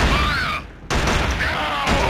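Explosions burst close by.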